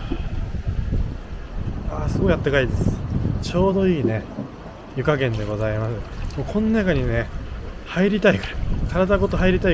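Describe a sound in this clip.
A hand splashes in running water.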